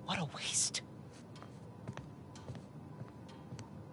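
Soft footsteps walk away across a hard floor.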